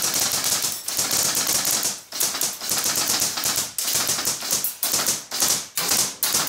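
A rifle fires loud shots that ring and echo around a hollow room.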